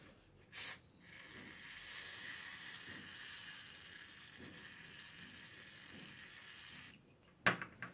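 An aerosol can sprays through a thin straw with a steady hiss.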